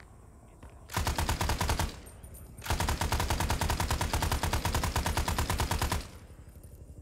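A machine gun fires long, rapid bursts.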